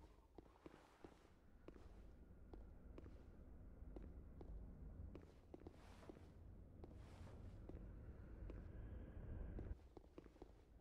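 Footsteps tread slowly over rock.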